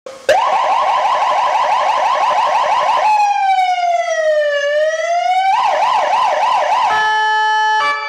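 An ambulance siren wails loudly, switching between fast and slow rising and falling tones.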